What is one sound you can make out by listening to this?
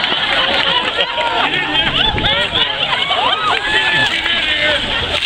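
A crowd of people outdoors cheers and screams with excitement.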